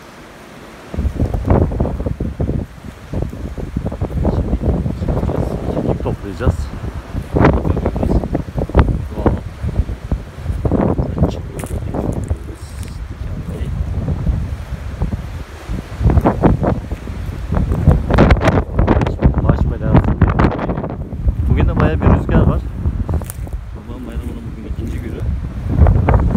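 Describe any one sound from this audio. Footsteps crunch on dry ground and twigs close by.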